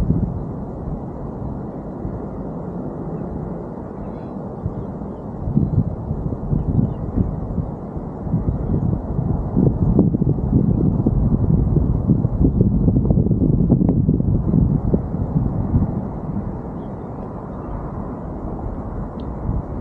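Wind gusts roughly across the microphone outdoors, growing stronger for a while before easing.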